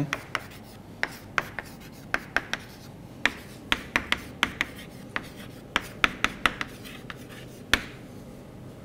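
Chalk taps and clicks sharply against a blackboard.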